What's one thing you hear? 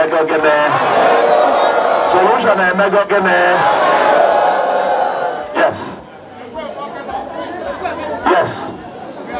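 A man speaks loudly with animation through a microphone and loudspeakers outdoors.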